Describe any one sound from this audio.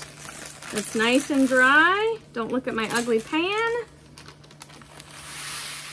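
Parchment paper crinkles and rustles.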